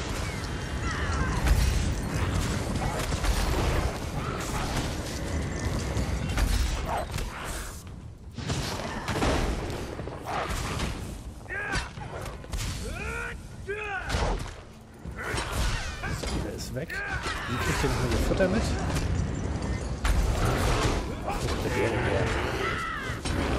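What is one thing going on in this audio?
Magic spells crackle and burst in a fight.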